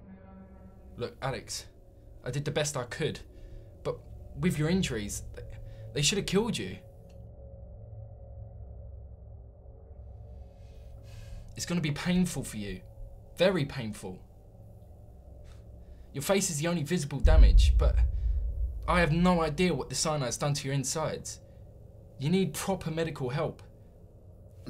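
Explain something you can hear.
A young man speaks tensely and urgently, close by.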